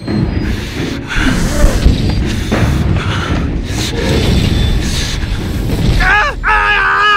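A fire roars loudly.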